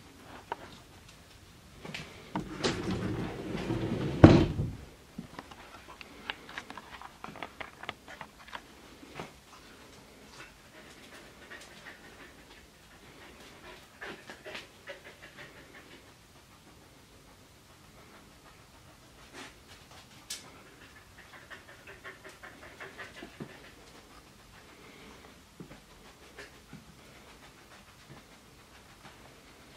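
A dog's claws tap and click on a hard floor.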